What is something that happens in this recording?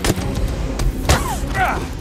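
Heavy blows thud in a close fight.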